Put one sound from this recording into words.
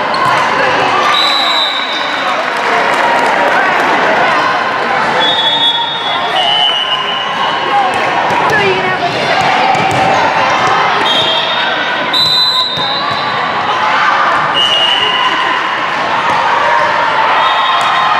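A crowd chatters loudly in a large echoing gym.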